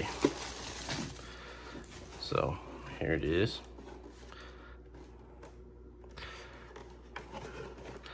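Plastic wrap rustles and crinkles.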